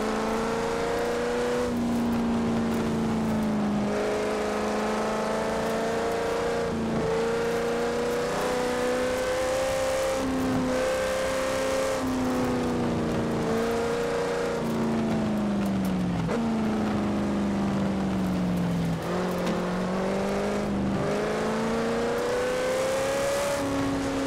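A car engine roars steadily, rising and falling in pitch as gears change.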